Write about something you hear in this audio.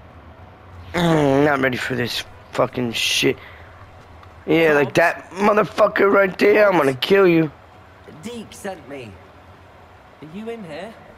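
A man calls out loudly, asking questions.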